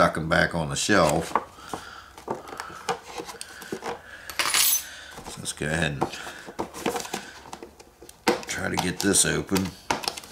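A cardboard box rustles and taps as hands handle it.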